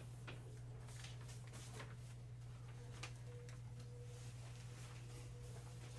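Paper rustles softly on a table.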